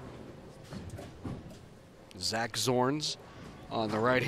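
A bowling ball thuds onto a lane and rolls away.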